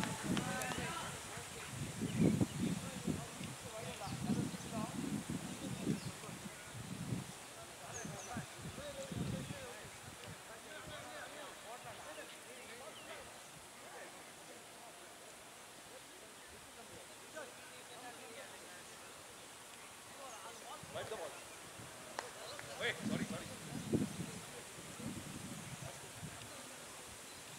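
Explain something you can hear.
Men talk and call out across an open field, heard from a distance.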